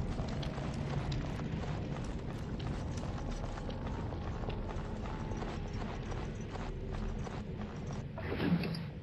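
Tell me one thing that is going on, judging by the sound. Footsteps tread steadily on a hard stone floor.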